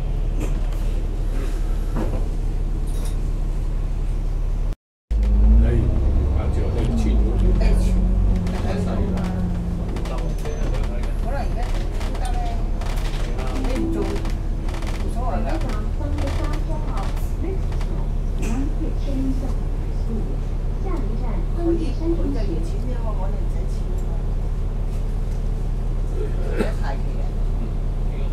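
A bus engine drones steadily, rising in pitch as the bus pulls away.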